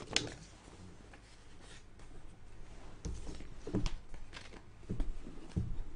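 Book pages rustle as they are turned.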